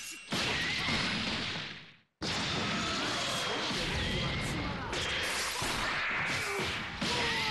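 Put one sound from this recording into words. Punches and blasts thud and crash in a fast video game fight.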